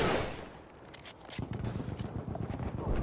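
A rifle bolt clicks as it is worked back and forth.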